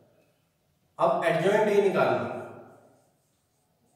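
A man speaks calmly and clearly.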